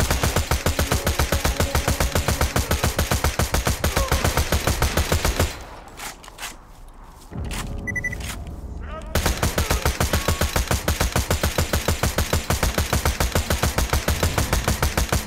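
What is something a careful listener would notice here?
A machine gun fires rapidly and steadily.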